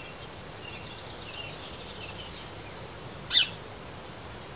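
A small bird chirps nearby with short high calls.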